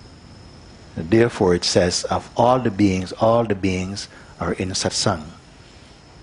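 A middle-aged man speaks with animation, close to the microphone.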